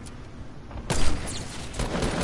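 A rifle fires once with a sharp crack.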